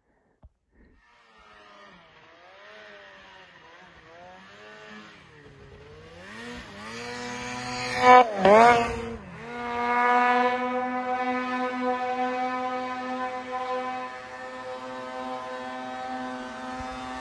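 A snowmobile engine revs up and down nearby.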